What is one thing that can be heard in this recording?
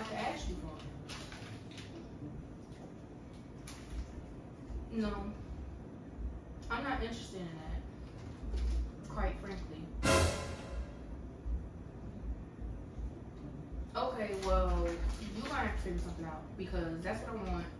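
A young woman talks on a phone nearby.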